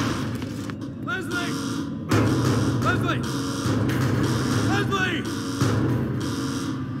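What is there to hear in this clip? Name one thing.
A man shouts loudly in an echoing space.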